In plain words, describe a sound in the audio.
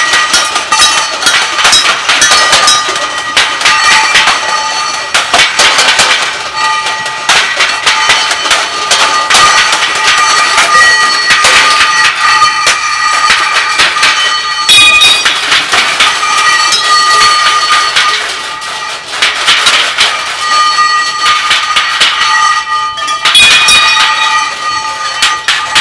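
Metal objects are struck with sticks and clang repeatedly.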